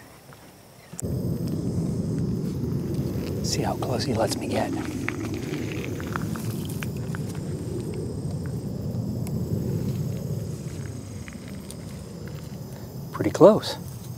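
Wind blows outdoors and rustles dry reeds.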